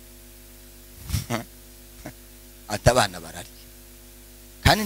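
A man speaks with animation through a microphone and loudspeakers in a reverberant room.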